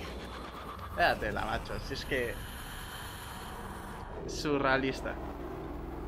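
A young man talks and laughs with animation into a microphone.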